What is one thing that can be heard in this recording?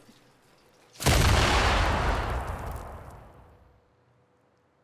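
A loud explosion booms and slowly fades.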